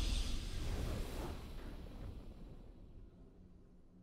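A triumphant game fanfare swells and fades away.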